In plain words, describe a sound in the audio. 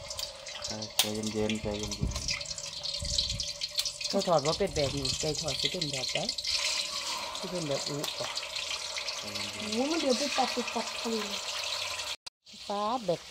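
Meat sizzles and spits in hot oil in a pan.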